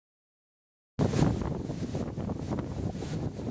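Waves crash on a nearby shore.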